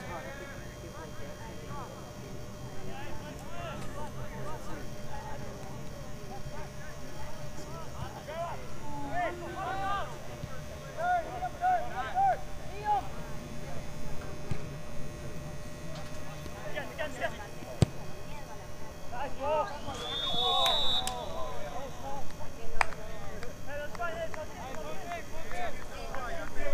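Players shout to each other across an open field outdoors.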